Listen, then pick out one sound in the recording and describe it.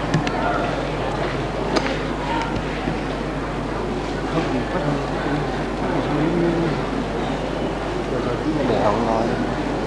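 A man chants slowly through a loudspeaker.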